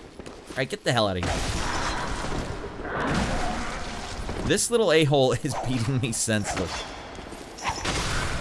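Blades slash and strike in a game fight.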